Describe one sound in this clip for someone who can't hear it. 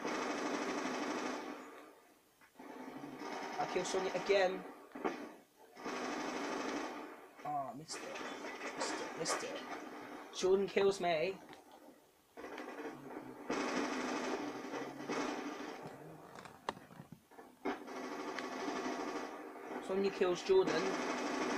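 Video game gunfire bursts from a speaker.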